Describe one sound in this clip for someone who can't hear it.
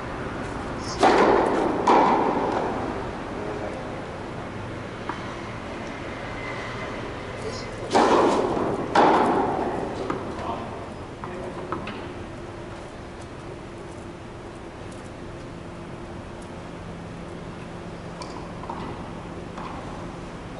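A tennis racket strikes a ball with a sharp pop that echoes through a large indoor hall.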